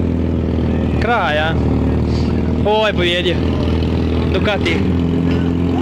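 A motorcycle engine revs up sharply several times.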